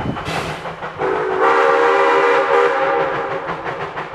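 A steam locomotive whistle blows loudly from a distance.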